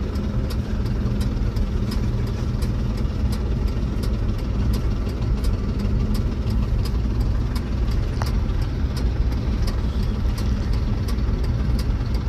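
A truck engine rumbles steadily from inside the cab as it drives along.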